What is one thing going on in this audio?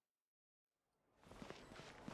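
Footsteps run quickly on a stone pavement.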